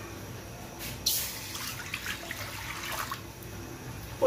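Water pours and splashes into a metal pan.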